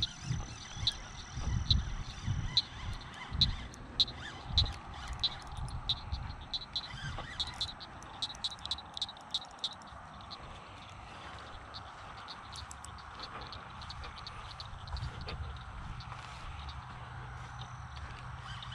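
A fishing reel clicks as its line is wound in.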